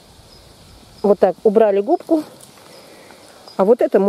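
A mushroom stem snaps softly as it is pulled from the ground.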